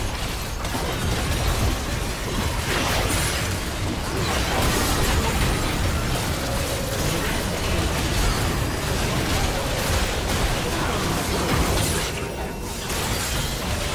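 Magic spells crackle, whoosh and boom in a fast fight.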